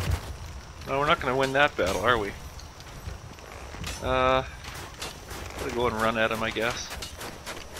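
Footsteps patter on stone steps.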